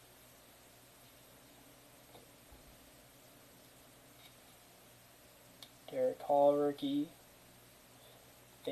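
Cards slide and flick softly against one another.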